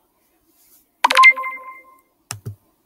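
A video game plays a short electronic chime.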